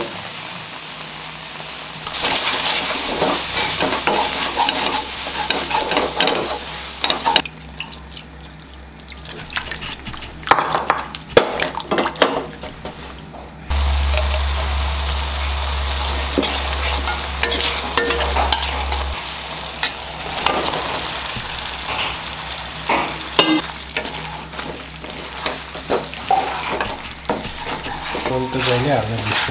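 Food sizzles in hot oil.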